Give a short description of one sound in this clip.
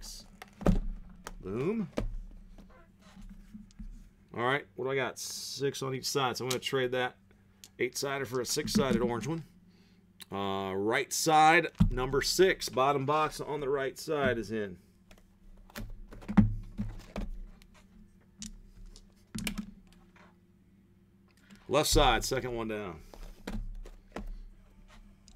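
Cardboard boxes knock and slide against each other.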